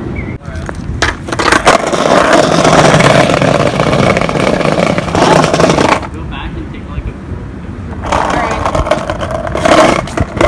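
Skateboard wheels rumble and clatter over paving stones.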